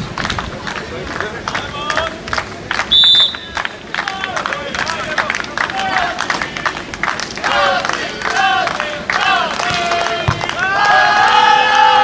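A crowd of spectators chatters and calls out outdoors.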